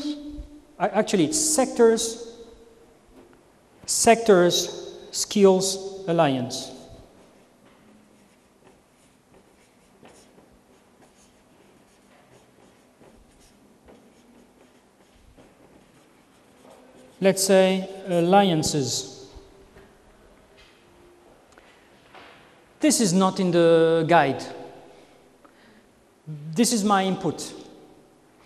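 A man speaks calmly in short phrases, with pauses between them.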